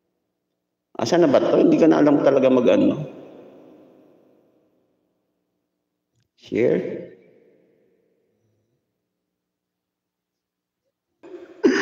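A man speaks close to a microphone in short bursts, with some reverb.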